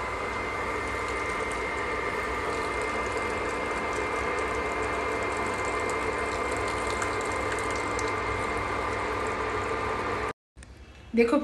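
Liquid pours in a thin stream into a small strainer.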